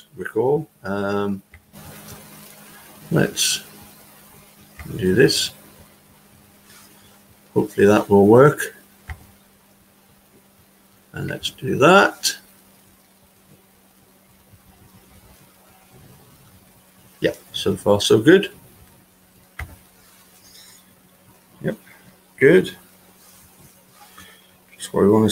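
A middle-aged man speaks calmly into a microphone over an online call, in short bursts with pauses.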